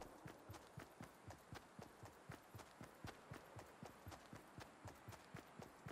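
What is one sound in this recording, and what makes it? Quick footsteps thud on grass in a steady running rhythm.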